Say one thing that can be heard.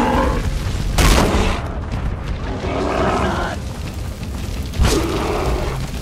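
A club strikes a beast with a heavy thud.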